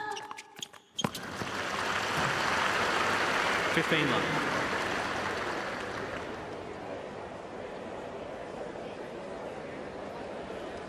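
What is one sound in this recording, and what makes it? A crowd applauds loudly, then the clapping slowly fades.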